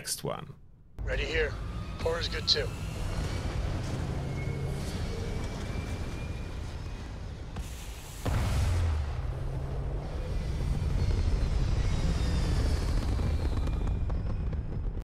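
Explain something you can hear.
A spaceship's engines roar and rumble as it lifts off and flies away.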